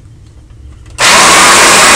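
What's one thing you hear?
A vacuum cleaner switches on and roars loudly up close.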